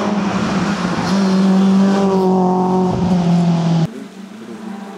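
A car engine roars at high revs as a car speeds past.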